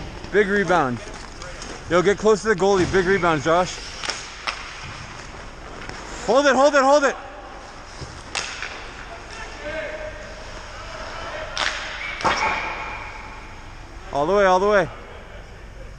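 Players shout loudly across an echoing rink.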